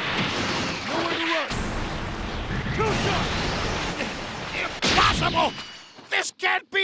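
Energy blasts roar and crackle in a loud burst of fighting.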